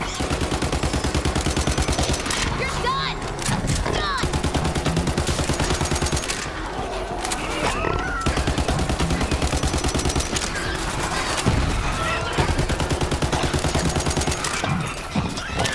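A gun fires in rapid, steady bursts.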